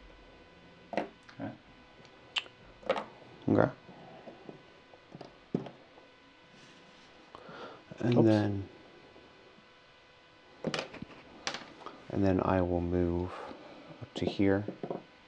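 Small plastic figures tap and click as they are set down on a hard board.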